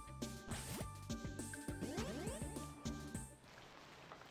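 Game music plays with a bouncy tune.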